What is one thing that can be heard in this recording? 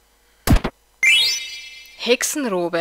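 A bright game jingle chimes.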